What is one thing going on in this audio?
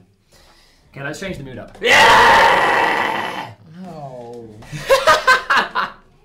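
A young man shouts and laughs with animation close by.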